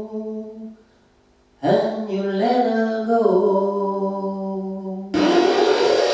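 A middle-aged man sings loudly into a microphone, heard through loudspeakers.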